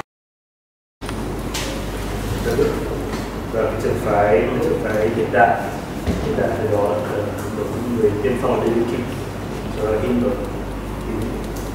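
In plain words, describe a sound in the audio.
A middle-aged man speaks calmly to a room.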